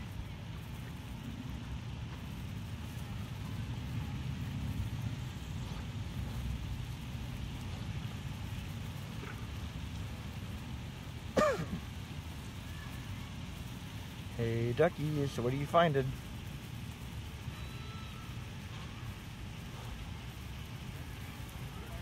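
Ducks peck and tear at short grass close by.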